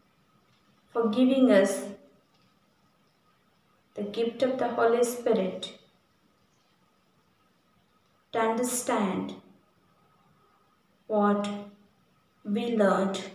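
A woman speaks calmly and slowly into a close microphone, with pauses between phrases.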